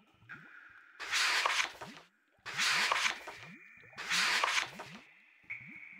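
Paper pages of a book flip over, one after another.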